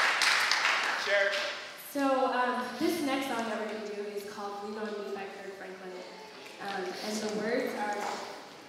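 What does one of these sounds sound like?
A group of young singers sings together in close harmony without instruments.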